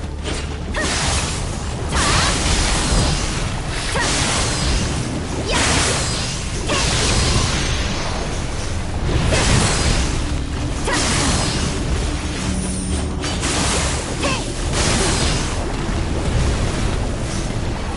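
Magic blasts burst with a loud whoosh.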